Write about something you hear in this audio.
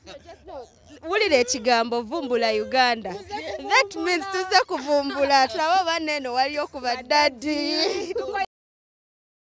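A young woman talks with animation into a handheld microphone.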